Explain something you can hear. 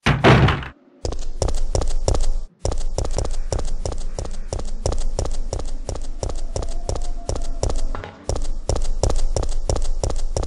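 Footsteps thud quickly on hard ground.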